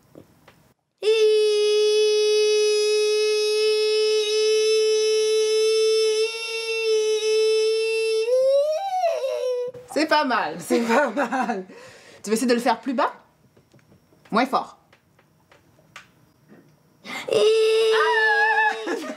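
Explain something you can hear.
A young girl sings a long, steady high note.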